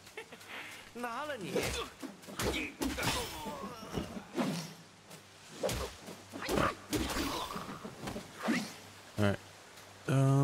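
A man talks through a microphone.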